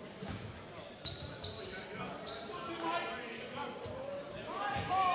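Sneakers squeak sharply on a wooden gym floor in an echoing hall.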